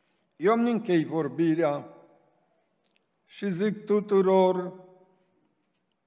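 An elderly man speaks slowly and with emphasis into a microphone, in a room with some echo.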